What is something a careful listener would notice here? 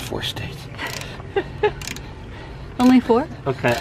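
A socket wrench clicks and rattles against metal.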